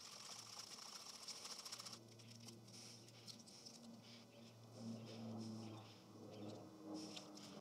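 A plastic scraper rubs on a painted metal tank.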